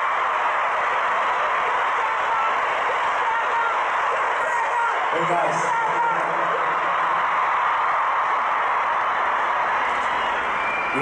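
A large crowd screams and cheers steadily in a big open space.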